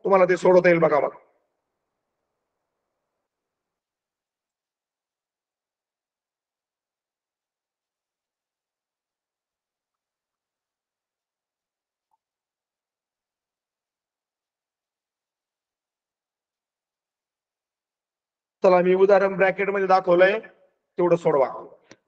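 A man speaks calmly through an online call, in short bursts with a long pause between them.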